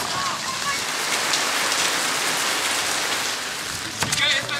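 Rain pours off a roof edge and splashes steadily.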